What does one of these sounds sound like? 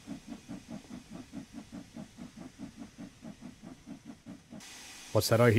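A steam engine chuffs steadily.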